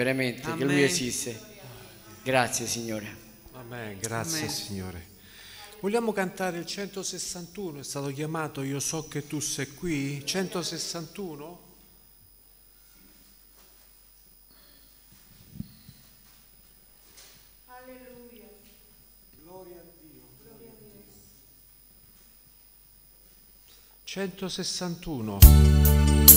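An elderly man speaks calmly into a microphone over loudspeakers in an echoing hall.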